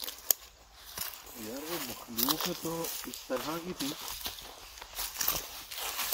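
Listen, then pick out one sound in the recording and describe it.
Leaves and branches rustle as someone pushes through brush.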